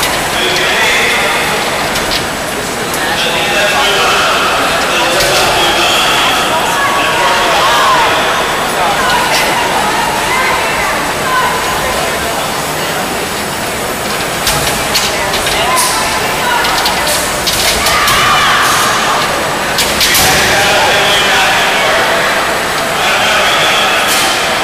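A seated crowd murmurs and calls out around an indoor arena.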